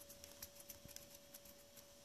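Fingers lightly brush small gritty flakes in a plastic pan.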